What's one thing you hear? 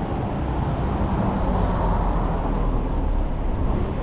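A car passes by on the street.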